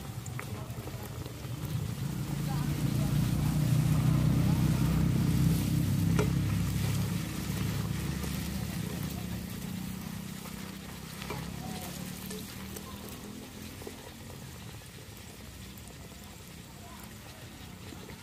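A wood fire roars low beneath a pan.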